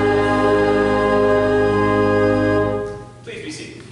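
An organ holds a loud chord that stops.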